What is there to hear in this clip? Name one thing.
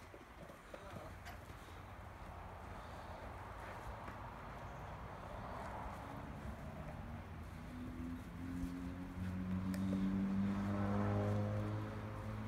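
A dog's paws rustle through grass.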